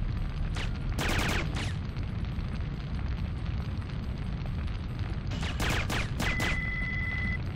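Silenced gunshots fire in short, quick bursts.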